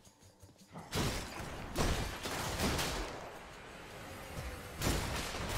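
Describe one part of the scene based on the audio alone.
Magic blasts burst and crackle in quick succession.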